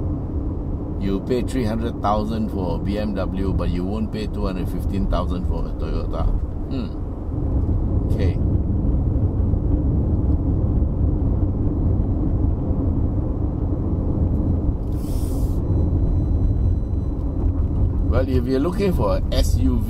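A middle-aged man talks calmly inside a moving car.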